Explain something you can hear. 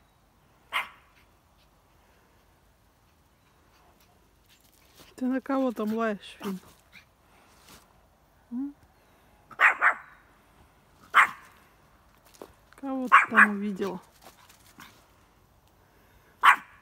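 A small dog barks sharply.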